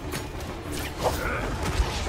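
A gun fires in quick shots.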